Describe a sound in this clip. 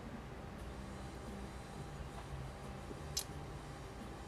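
A glass jar is set down on a table.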